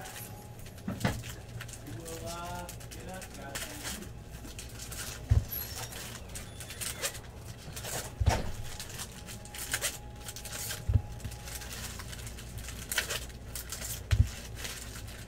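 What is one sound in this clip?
Packs of cards knock and tap against a table.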